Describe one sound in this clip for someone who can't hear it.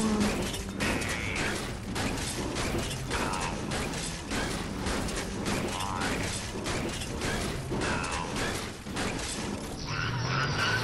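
A pickaxe strikes metal in quick repeated blows.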